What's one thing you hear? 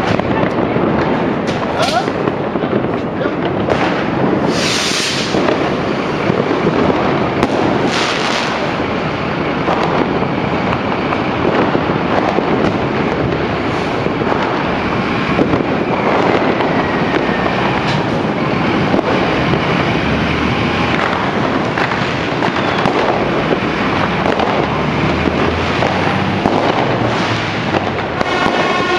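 A siren wails from a fire engine.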